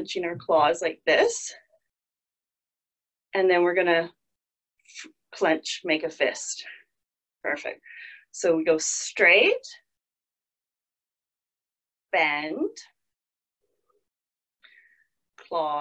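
A woman speaks calmly into a close microphone, as in an online call, giving instructions in short bursts.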